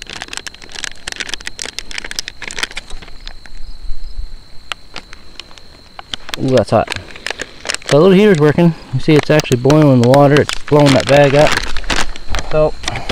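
A plastic packet crinkles and rustles as it is handled.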